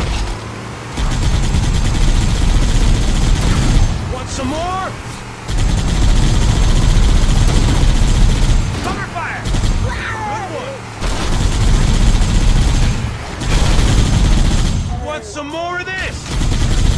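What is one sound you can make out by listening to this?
A mounted machine gun fires rapid bursts.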